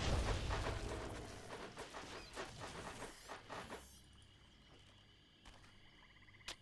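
Magic spells burst and crackle in a game.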